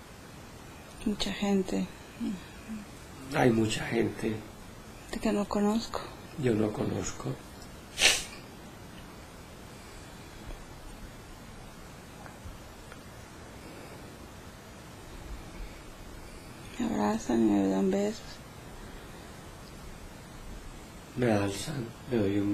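A young woman speaks softly and slowly, close by, in short phrases with long pauses.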